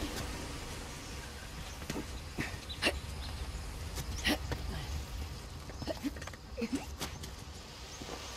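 Footsteps run quickly over grass and rock.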